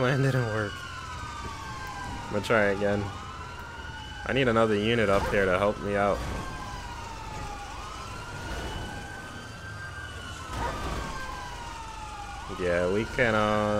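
A police siren wails steadily, rising and falling.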